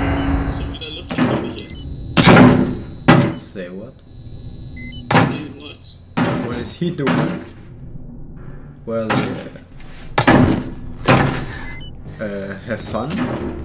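A man pounds heavily on a wooden door again and again.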